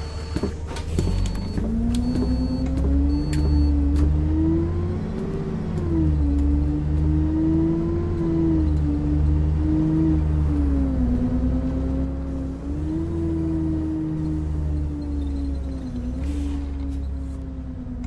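A bus engine revs up and drones as the bus drives along, rising and falling in pitch.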